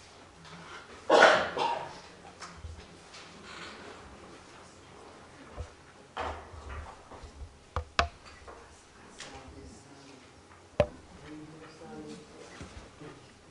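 Fabric rustles softly as dancers move.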